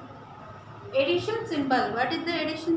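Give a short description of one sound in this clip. A young woman speaks calmly, close by.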